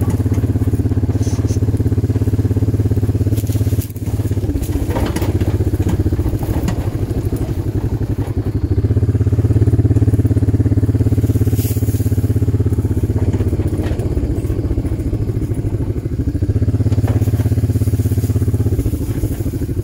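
An ATV engine idles with a low, steady rumble that rises and falls slightly.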